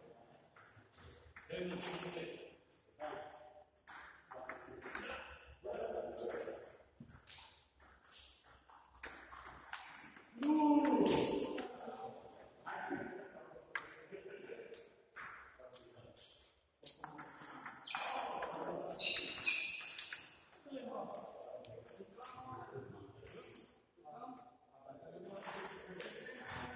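A table tennis ball clicks back and forth on paddles and a table in an echoing hall.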